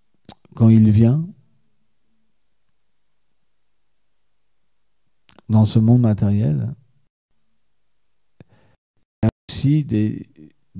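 A man speaks calmly into a microphone in short phrases with long pauses.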